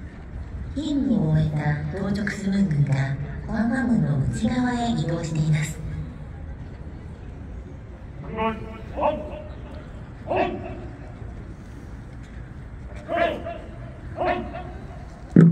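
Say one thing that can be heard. A man calls out commands loudly outdoors in long drawn-out shouts.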